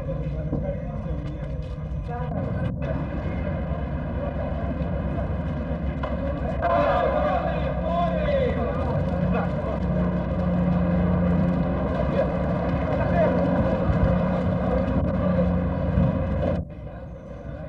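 A crowd murmurs and calls out nearby.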